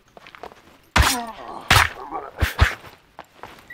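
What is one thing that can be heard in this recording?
Heavy blows strike a body with wet thuds.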